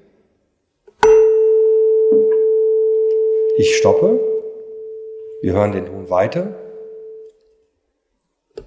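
A tuning fork is struck with a mallet and rings with a clear, steady tone that slowly fades.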